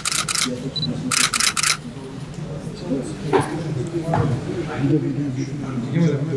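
Papers rustle as folders are handed over.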